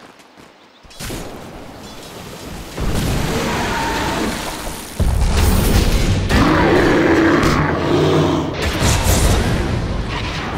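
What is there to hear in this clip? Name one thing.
Game spells whoosh and crackle during a battle.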